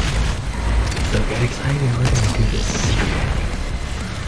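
Heavy gunshots blast in quick bursts.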